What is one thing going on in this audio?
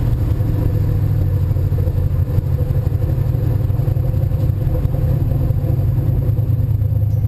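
Wind rushes loudly past the open car window.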